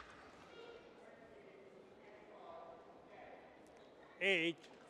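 A racket strikes a shuttlecock with a light pop.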